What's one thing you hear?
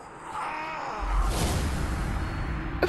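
A deep boom sounds as a victory is announced.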